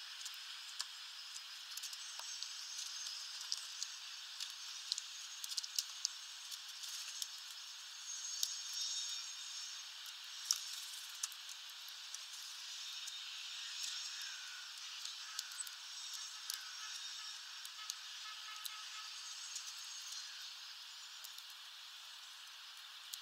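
Birds chirp and twitter nearby.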